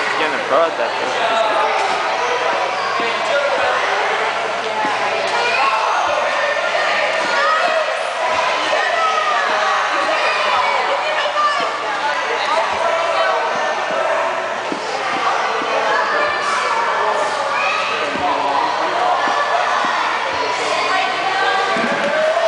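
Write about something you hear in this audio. Many voices chatter and echo around a large indoor pool.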